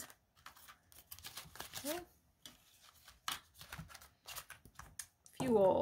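Plastic sleeves flip over with soft clicks.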